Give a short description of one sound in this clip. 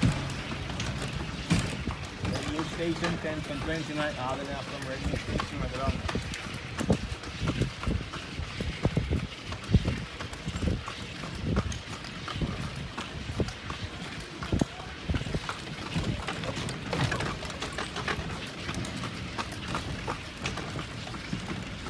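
Carriage wheels rattle and creak over the road.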